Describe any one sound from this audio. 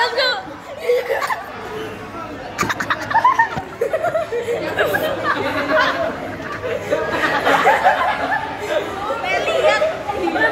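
Many people talk over each other in a busy room.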